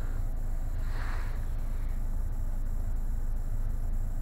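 Buttons click on a car's dashboard.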